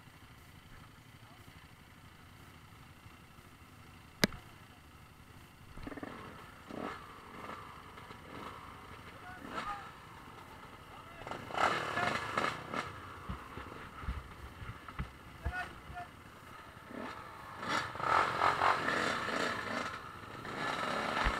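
A group of dirt bikes idles and putters.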